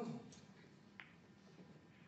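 A snooker cue strikes the cue ball with a sharp click.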